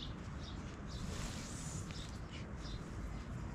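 A heavy rug flaps and rustles as it is shaken out.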